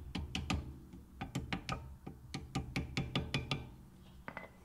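A hammer taps repeatedly on metal.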